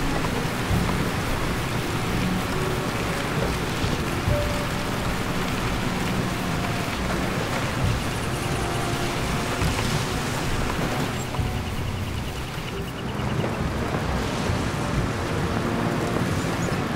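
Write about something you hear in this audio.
Tyres roll and rattle over rough dirt ground.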